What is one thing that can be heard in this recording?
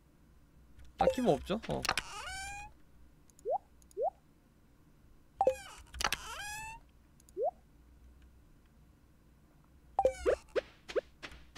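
Short bright chimes and whooshing clicks sound as a game menu opens and closes.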